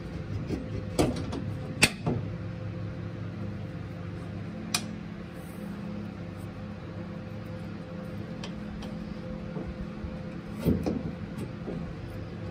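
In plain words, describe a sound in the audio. Metal parts clink and tap sharply now and then.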